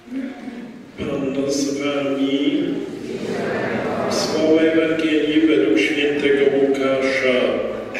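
A man chants in a steady, sung voice through a microphone.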